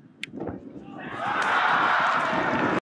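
A crowd bursts into loud cheering.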